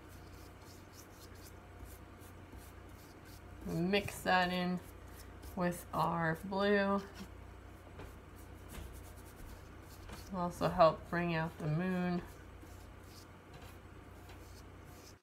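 A paintbrush swishes softly across paper.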